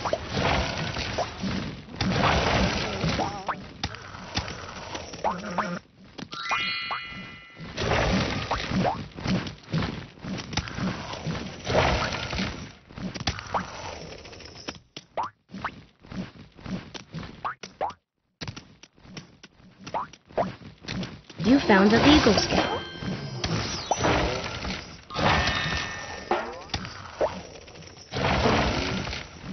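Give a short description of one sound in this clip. Light game music plays throughout.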